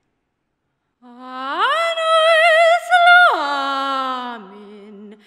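A young woman sings loudly into a microphone, holding long notes.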